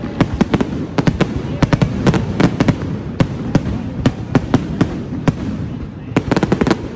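A low rumble of exploding fireworks rolls on throughout.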